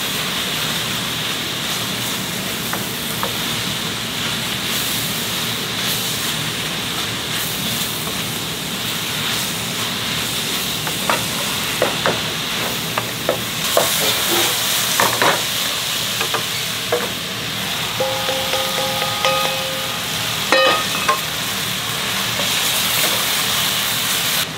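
Vegetables sizzle steadily in a hot pot.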